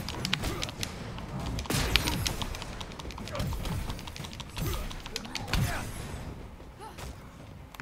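Gunfire and blasts crack in rapid bursts.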